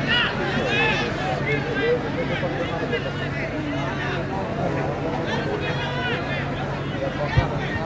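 A large outdoor crowd cheers and chatters loudly.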